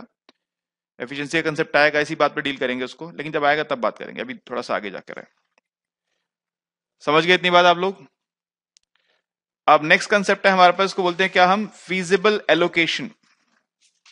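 A man lectures calmly into a headset microphone, in bursts with pauses.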